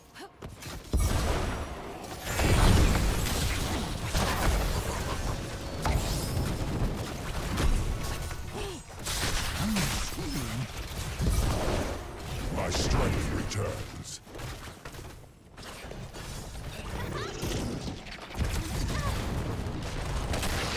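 Magic blasts and weapon fire crackle and boom in a busy video game battle.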